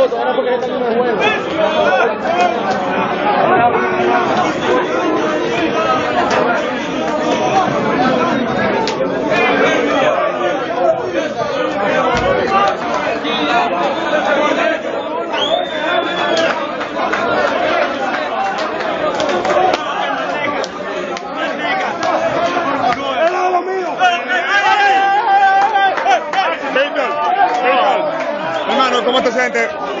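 A crowd of men talk, shout and cheer loudly in a busy room close by.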